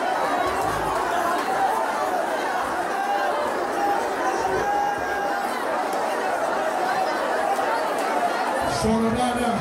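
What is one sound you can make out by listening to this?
A large crowd sings and shouts loudly in an echoing hall.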